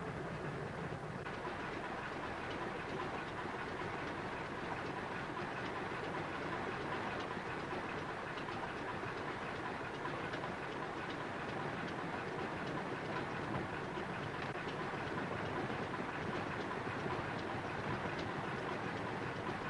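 A biplane's piston engine drones in flight.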